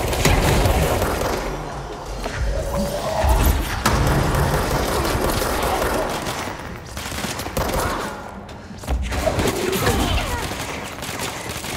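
Heavy objects smash and clatter as they are flung through the air.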